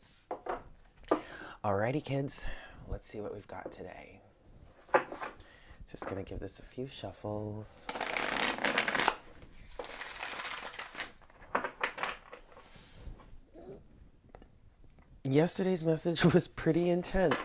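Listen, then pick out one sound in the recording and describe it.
Playing cards riffle and slap as they are shuffled.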